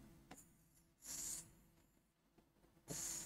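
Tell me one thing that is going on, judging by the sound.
A marker scratches across a board in short strokes.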